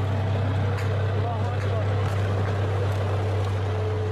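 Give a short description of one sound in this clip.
A tank engine rumbles loudly and steadily close by.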